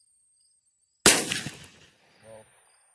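A single gunshot cracks outdoors and echoes away.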